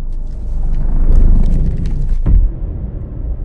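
Stiff paper rustles and flaps as a book's page turns.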